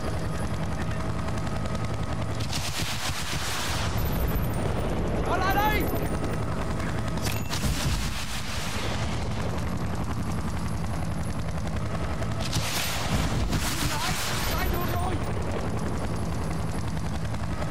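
Explosions boom on the ground below.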